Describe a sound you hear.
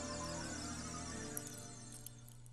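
An ocarina plays a short tune.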